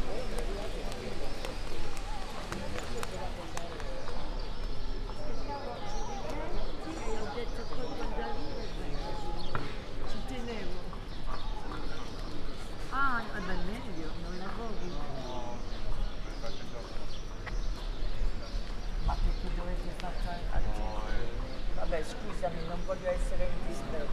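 Men and women chatter at a distance outdoors.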